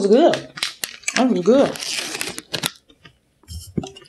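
A wrapper crinkles in a woman's hand.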